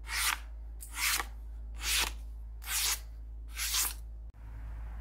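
A sharp blade slices through paper with quick, crisp swishes.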